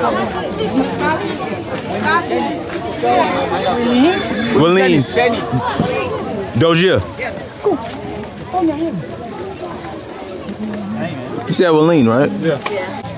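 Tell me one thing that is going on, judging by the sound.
A crowd of people chatters and calls out.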